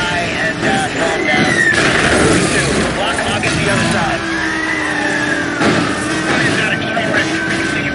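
Police sirens wail with rising and falling pitch.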